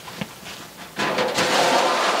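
A sheet of metal scrapes and rattles as it is lifted.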